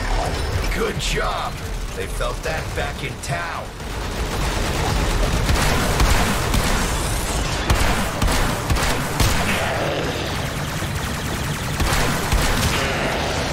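Energy blasts crackle and explode.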